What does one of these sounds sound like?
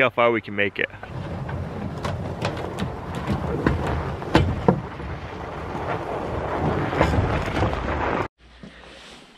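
Wheels of a cart roll and crunch over packed snow.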